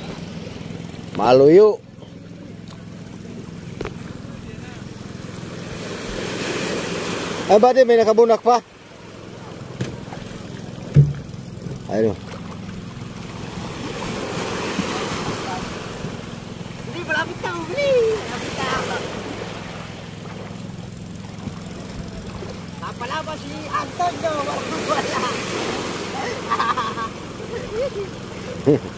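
Small waves wash onto the shore.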